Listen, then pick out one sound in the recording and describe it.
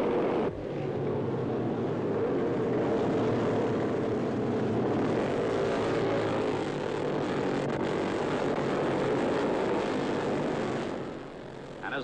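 Motorcycle engines roar as racers speed along a street.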